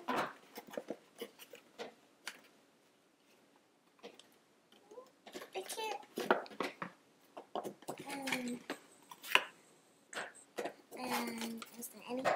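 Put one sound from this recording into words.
A cardboard box rustles and taps as it is opened.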